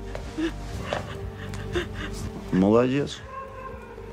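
A woman sobs close by.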